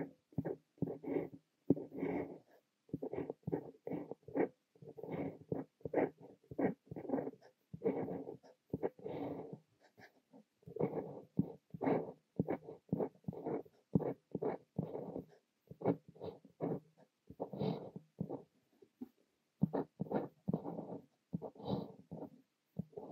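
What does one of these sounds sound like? A fountain pen nib scratches across paper in short strokes.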